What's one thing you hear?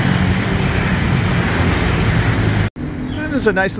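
Traffic rumbles past on a busy city street.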